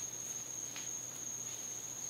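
Footsteps scuff softly on hard ground.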